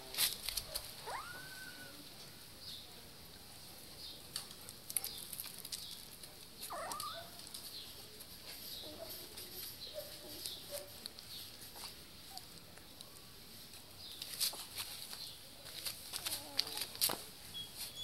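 Puppies whimper and squeal up close.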